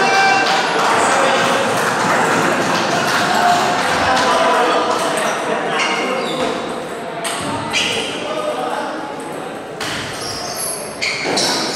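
A table tennis ball clicks back and forth across a table.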